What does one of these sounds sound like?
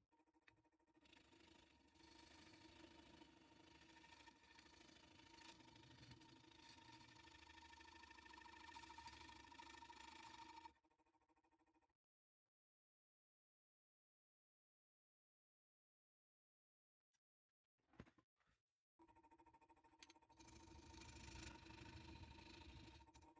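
A chisel scrapes and shaves against spinning wood.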